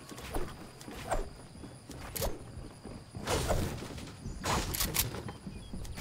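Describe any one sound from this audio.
Wooden walls snap into place with sharp clacks.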